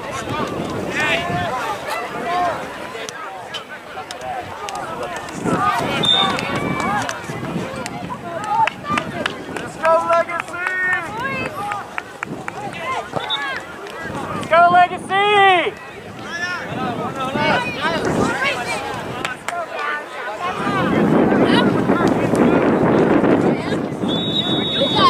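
Young players shout to each other outdoors across an open field.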